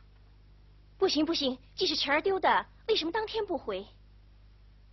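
A young woman answers pleadingly.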